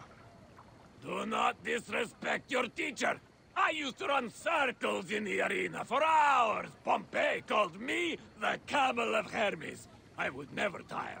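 An elderly man speaks with animation and indignation.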